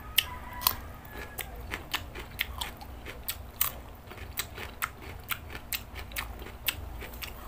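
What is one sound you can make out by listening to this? A man chews food noisily with his mouth close by.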